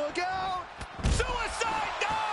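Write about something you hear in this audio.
A body slams hard onto the floor with a heavy thud.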